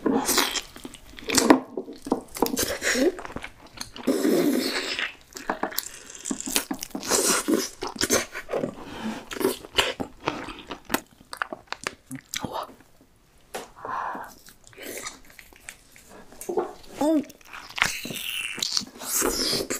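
A young woman chews and slurps food loudly and close.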